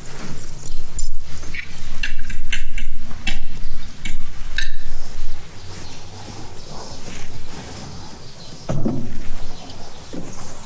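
A fork scrapes on a plate.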